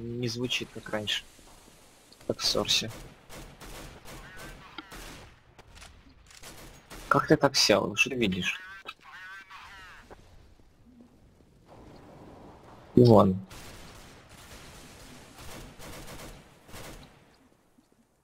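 A rifle fires short bursts of shots.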